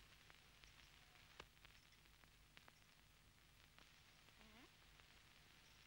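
Milk squirts into a metal pail.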